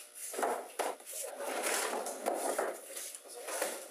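A chair scrapes as it is lifted.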